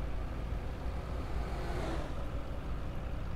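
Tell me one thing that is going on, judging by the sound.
A truck passes by with a brief whoosh.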